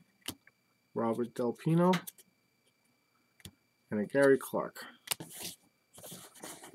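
Trading cards rustle and slap as they are shuffled by hand.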